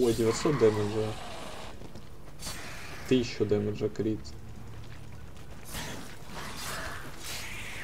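Swords clash and swish in a fight.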